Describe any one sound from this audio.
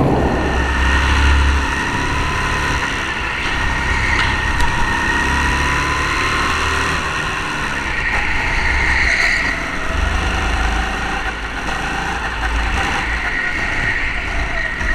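A go-kart engine buzzes loudly close by, rising and falling in pitch.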